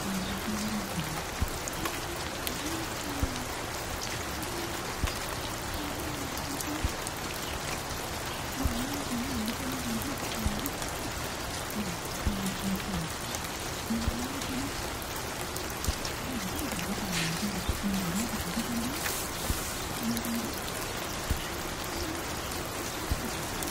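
A vinyl record crackles and pops on a turntable.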